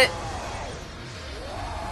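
A blade slashes through the air with a whoosh.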